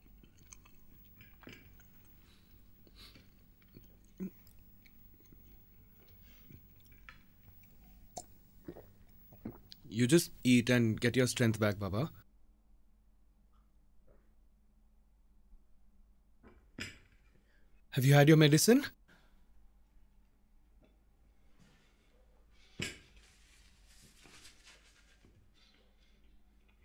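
Cutlery clinks lightly against a plate.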